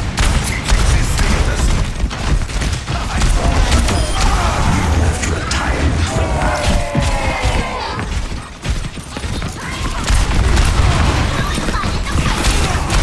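Guns fire rapid bursts of shots.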